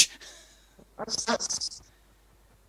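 A middle-aged man laughs close to a microphone.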